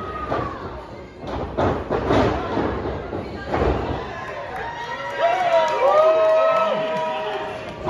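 A crowd cheers and whoops in a large echoing hall.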